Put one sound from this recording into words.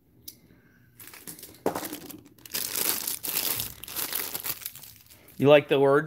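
Plastic bags rustle and crinkle.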